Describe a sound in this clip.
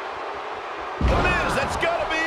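A wrestler slams down onto a wrestling ring mat with a heavy thud.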